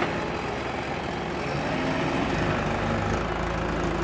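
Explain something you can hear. Soil scrapes and tumbles from a loader bucket.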